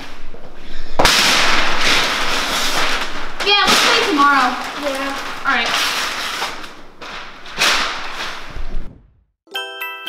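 Paper rips loudly and rustles as it is torn down.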